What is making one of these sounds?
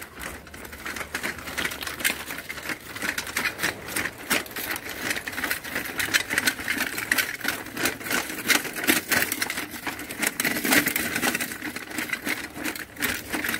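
A small tracked robot whirs and clatters as it crawls over gritty frozen ground.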